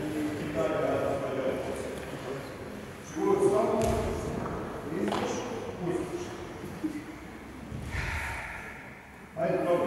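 Bare feet shuffle and thump on a wooden floor.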